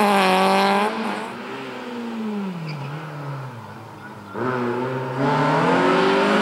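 A car engine revs again as a rally car approaches and passes.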